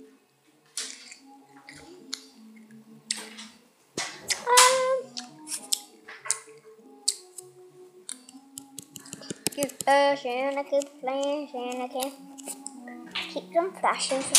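A young girl talks and sings playfully close by.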